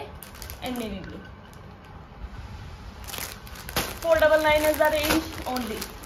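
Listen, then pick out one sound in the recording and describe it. A plastic packet crinkles as it is handled.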